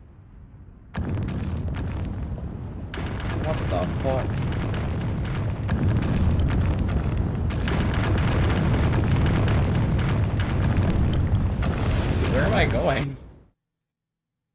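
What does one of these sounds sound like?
A deep, loud rumbling roar builds and then cuts off suddenly.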